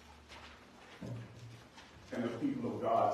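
A man speaks into a microphone in an echoing room.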